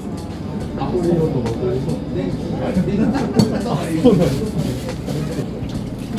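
Dishes clink at a counter.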